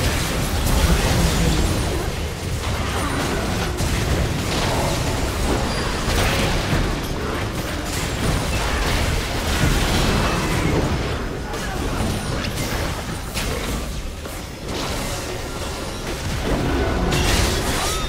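Spell effects burst and crackle in a fast video game fight.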